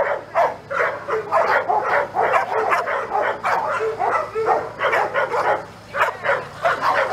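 A young woman talks to a dog with animation, close by.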